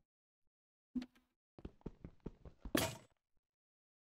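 A pickaxe chips at stone.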